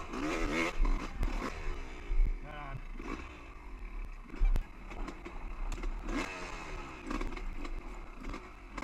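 Tyres crunch and bump over rocky ground.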